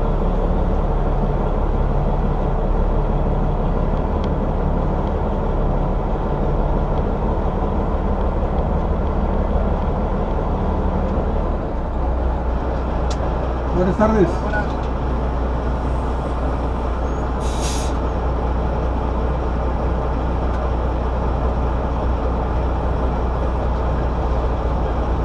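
A truck engine rumbles steadily from inside the cab as it rolls slowly forward.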